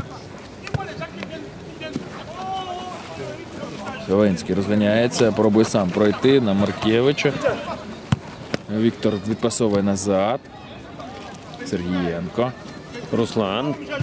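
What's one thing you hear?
A football thuds as it is kicked on a pitch outdoors.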